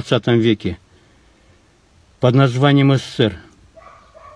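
An elderly man speaks calmly and close up, in short bursts.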